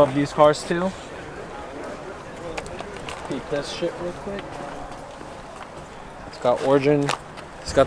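A young man speaks casually, close by, outdoors.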